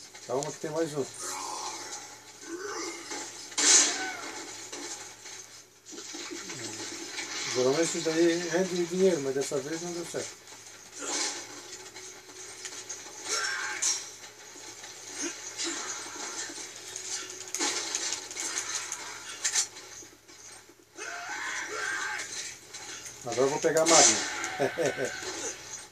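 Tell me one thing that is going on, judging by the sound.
Sound effects and music play from a television across the room.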